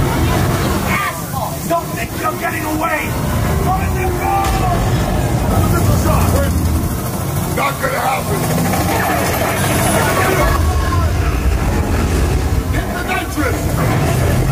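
A car engine roars loudly as a car speeds along a road.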